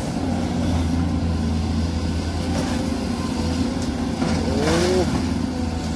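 Rocks and dirt tumble from an excavator bucket into a truck bed.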